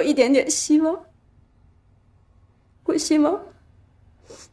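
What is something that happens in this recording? A young woman speaks tearfully and close by, her voice trembling.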